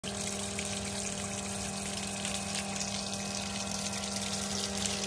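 Water gushes and splashes steadily from a pipe.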